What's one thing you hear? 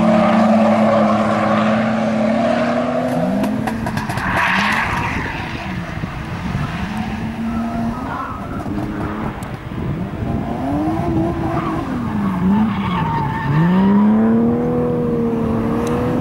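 A car engine revs hard, rising and falling over and over.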